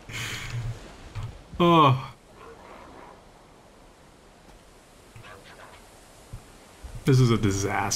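A young man talks and laughs with animation into a close microphone.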